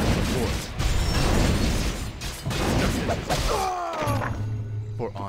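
Swords clash and clang in a noisy battle.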